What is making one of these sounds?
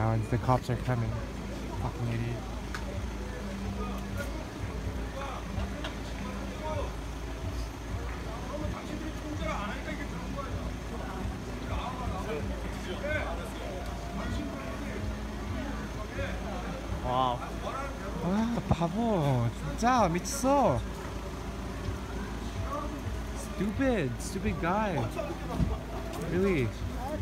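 A crowd of people chatters outdoors on a busy street.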